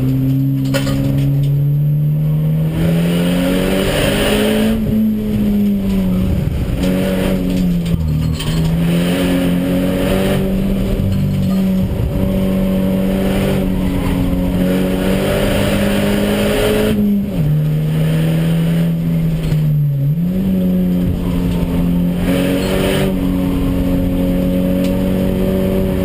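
A car engine roars loudly from inside the cabin, revving up and dropping as gears change.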